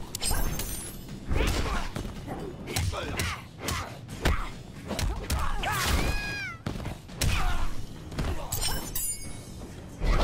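A magic energy blast whooshes and crackles.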